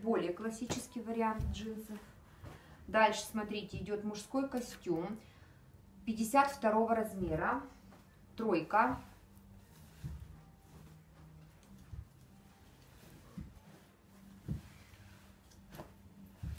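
Fabric rustles as clothes are handled and folded.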